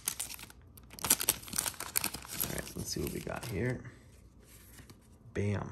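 Trading cards rustle as they are slid apart.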